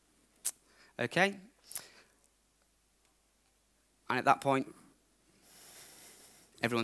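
A man speaks calmly through a headset microphone in short bursts with pauses.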